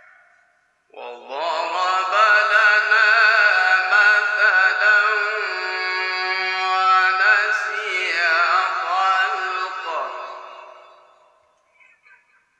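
A man chants melodically and at length into a microphone, heard through loudspeakers.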